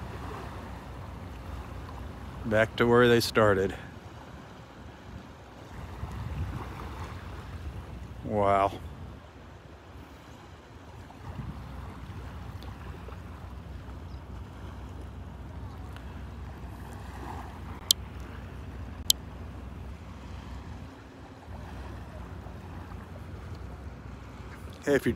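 Wind blows across the open shore.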